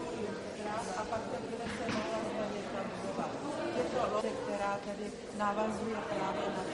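Several adults talk at once nearby.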